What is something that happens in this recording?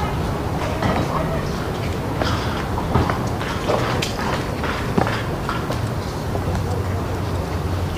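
Wind blows outdoors, rumbling steadily.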